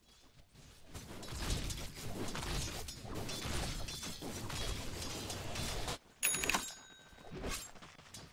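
Game spell effects and weapon hits clash in a busy fight.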